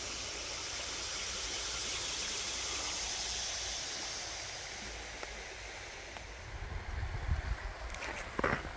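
Water laps gently against a stony shore.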